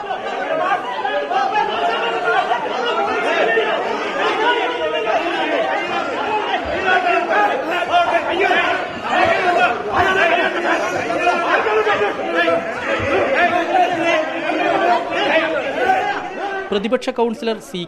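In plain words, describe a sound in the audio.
A crowd of men shout and argue loudly over each other.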